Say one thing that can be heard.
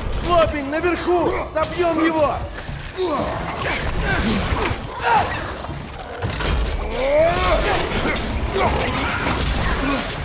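Weapons clash and strike in a fight.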